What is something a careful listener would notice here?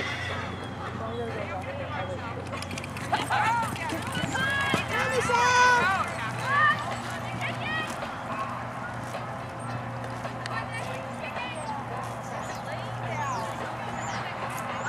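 Horse hooves thud softly on sand.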